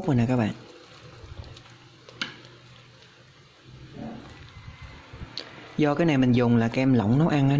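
A metal ladle stirs soup in a pot.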